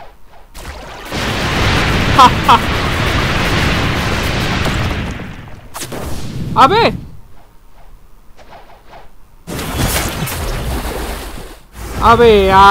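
A magical energy blast whooshes and roars.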